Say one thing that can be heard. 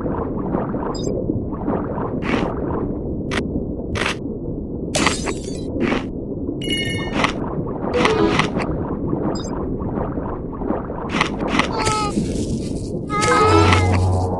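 A shark's jaws crunch as it bites prey underwater.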